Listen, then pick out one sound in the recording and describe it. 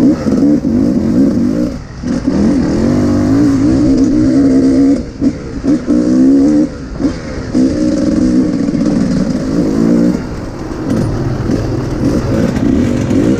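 Another dirt bike engine buzzes a short way ahead.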